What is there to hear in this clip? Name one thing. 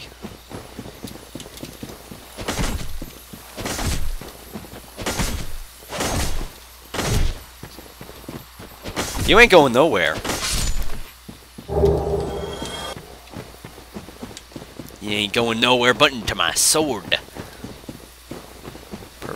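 Armoured footsteps thud and clank on soft ground.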